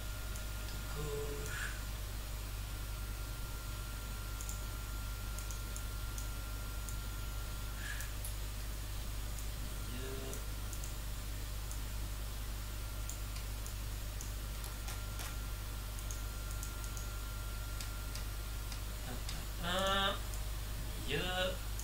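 A man speaks briefly and quietly into a microphone.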